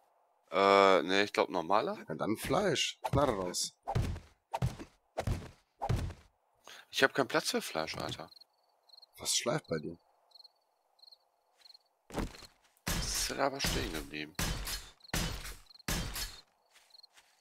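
Heavy blocks thud into place one after another.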